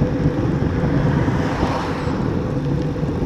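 A van drives past with a brief whoosh.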